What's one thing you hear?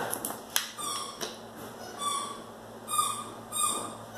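A plastic bottle crinkles.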